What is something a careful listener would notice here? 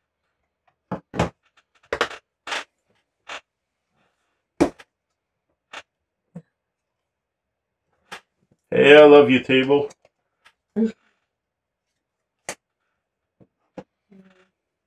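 Cards and game pieces click and tap on a table.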